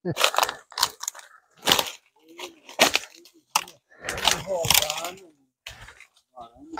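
Footsteps crunch through dry leaves close by.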